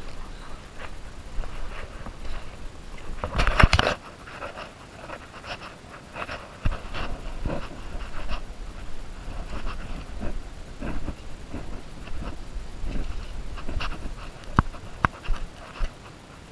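Footsteps crunch on a dirt trail at a quick pace.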